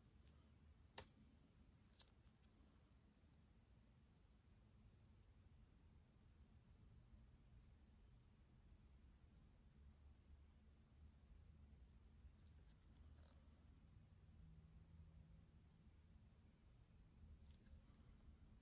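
Gloved fingers faintly click and rustle close by.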